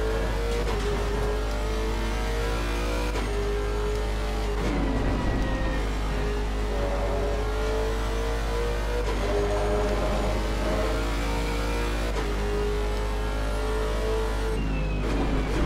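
A racing car engine roars loudly, rising in pitch and dropping with each upshift.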